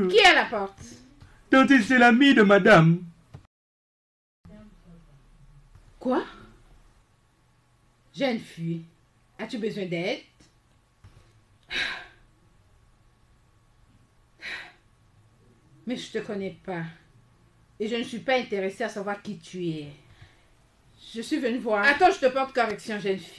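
A young woman shouts angrily nearby.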